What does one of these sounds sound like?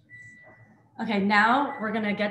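A young woman speaks brightly, heard through an online call.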